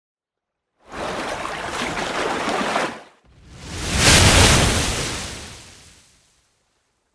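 Water splashes and surges with a rushing whoosh.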